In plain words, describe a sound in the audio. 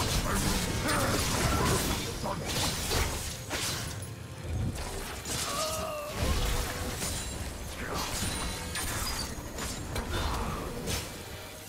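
Game characters clash with sharp hits.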